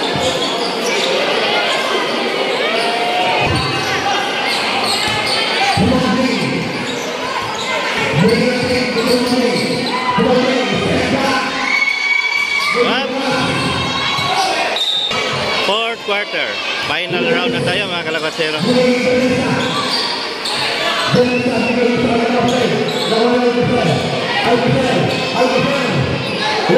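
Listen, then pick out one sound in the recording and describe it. A large crowd cheers and chatters loudly in an echoing hall.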